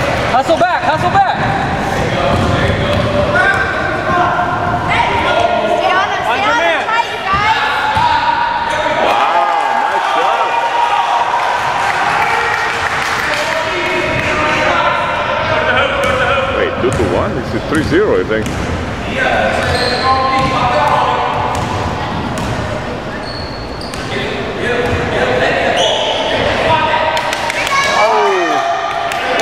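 Children shout and call out across an echoing gym.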